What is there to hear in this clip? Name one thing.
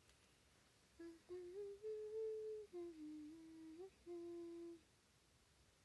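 A young woman hums a short tune close by.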